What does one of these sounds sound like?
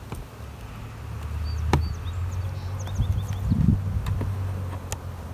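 A metal tool scrapes and clicks against the wooden hive frames.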